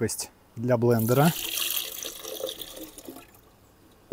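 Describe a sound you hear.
Coconut water splashes as it is poured into a glass.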